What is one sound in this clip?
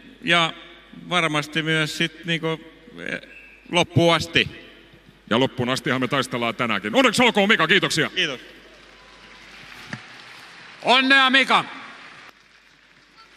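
A middle-aged man speaks cheerfully into a microphone up close.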